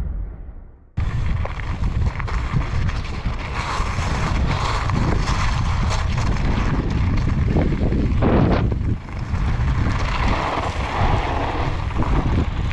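Bicycle tyres crunch and rattle over loose gravel.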